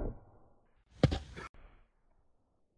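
A bat swings and smacks into a watermelon.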